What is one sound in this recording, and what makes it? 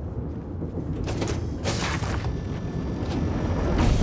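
A heavy metal door rumbles and swings open.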